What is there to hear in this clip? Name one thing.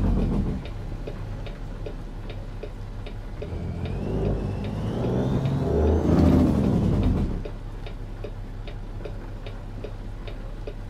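A truck's turn signal ticks steadily.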